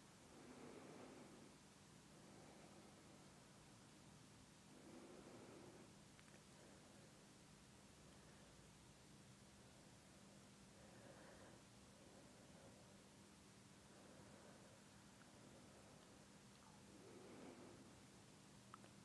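A middle-aged woman speaks calmly and quietly now and then.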